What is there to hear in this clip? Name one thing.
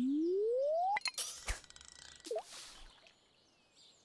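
A fishing line whips out and plops into water.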